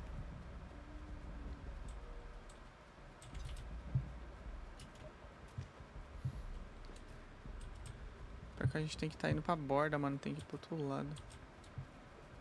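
Footsteps patter softly on dry ground.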